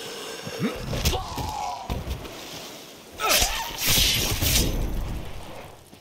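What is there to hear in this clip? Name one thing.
Heavy blows thud and smack against a body.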